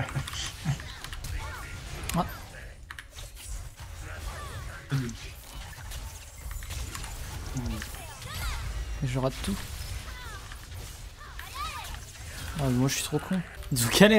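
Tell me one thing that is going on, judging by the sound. Fantasy game sound effects clash, zap and whoosh during a fight.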